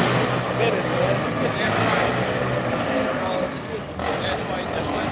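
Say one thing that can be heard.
Street traffic hums in the background.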